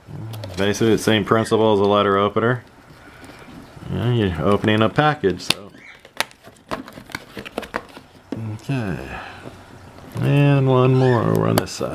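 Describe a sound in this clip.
A knife slices through tape on a cardboard box.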